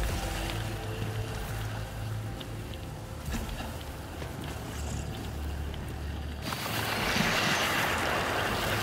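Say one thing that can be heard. Heavy footsteps clank on metal.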